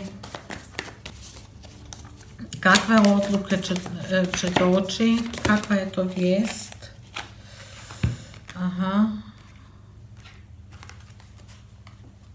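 Cards flick and rustle as they are shuffled by hand.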